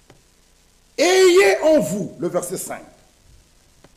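A man speaks loudly and with feeling through a microphone in an echoing room.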